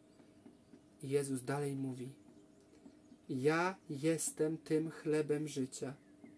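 A young man speaks close to a microphone, reading aloud in a calm, expressive voice.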